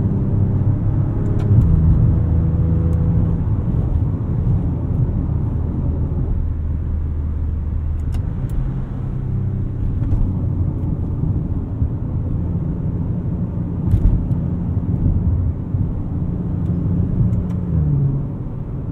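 A car engine hums and rises and falls in pitch as it accelerates and shifts gears.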